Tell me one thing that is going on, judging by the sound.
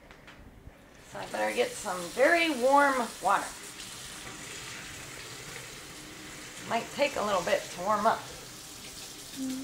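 Water runs from a tap in a steady stream.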